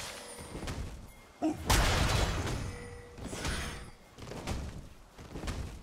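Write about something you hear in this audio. Video game spell effects burst and whoosh during a fight.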